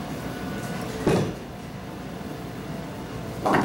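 A bowling ball thuds and rolls down a wooden lane.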